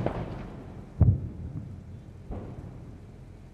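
A distant explosion booms.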